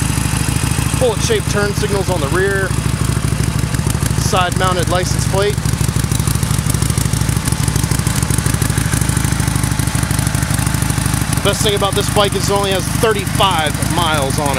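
A motorcycle engine idles with a steady low rumble.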